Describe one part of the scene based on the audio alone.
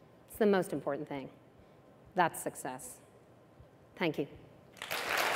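A woman speaks calmly into a microphone in a large hall.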